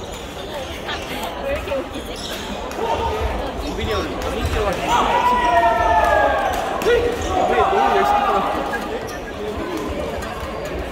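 Badminton rackets strike a shuttlecock with sharp pops in a large echoing hall.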